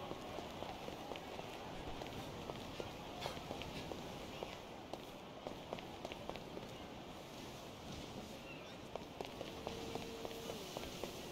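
Footsteps run quickly across hollow wooden boards.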